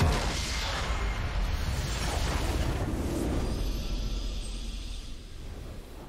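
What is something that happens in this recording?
A loud game explosion booms and rumbles, then fades.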